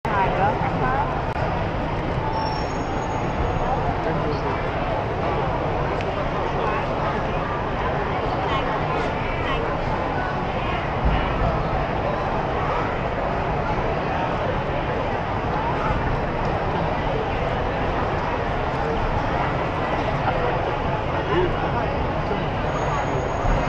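A large crowd chatters in a large echoing hall.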